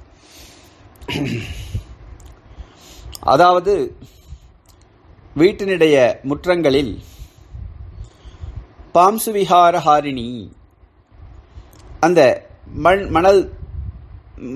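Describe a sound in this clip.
An elderly man speaks calmly and slowly through a microphone.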